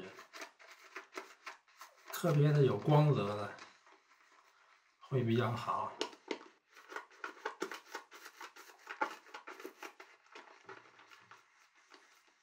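A brush whisks cream in a bowl with soft, quick scratching.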